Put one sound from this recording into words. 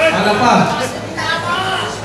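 An electric guitar plays loudly.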